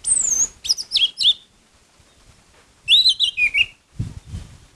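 A bird sings loud, clear whistling phrases close by.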